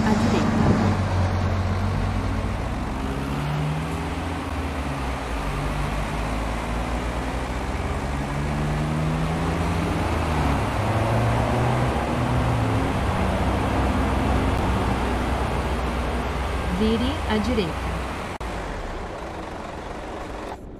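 A bus engine hums and rises and falls in pitch as it changes gear.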